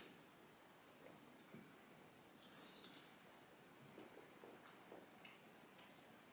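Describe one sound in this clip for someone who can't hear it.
A man chews food softly.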